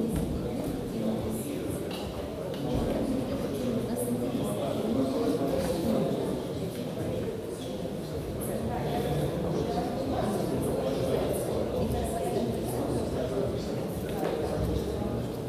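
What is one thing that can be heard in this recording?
A crowd of men and women chatter nearby in a large echoing hall.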